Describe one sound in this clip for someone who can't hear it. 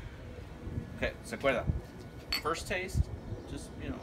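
Two glasses clink together in a toast.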